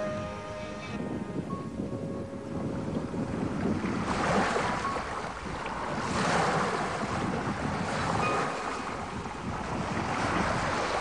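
Heavy waves crash and surge against a ship's hull.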